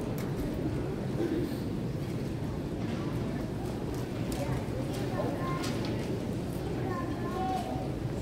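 A man speaks into a microphone in a large hall.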